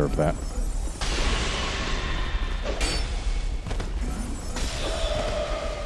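A magical blast whooshes and crackles.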